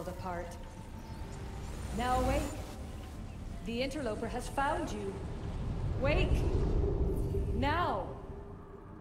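A woman speaks urgently and commandingly.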